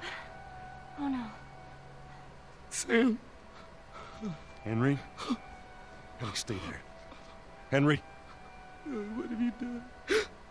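A young man speaks in a shaky, distressed voice.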